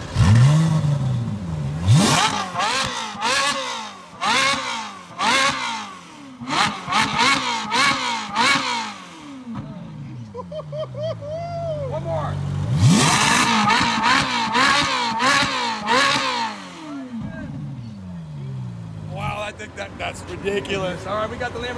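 A sports car engine revs loudly, rising and falling again and again.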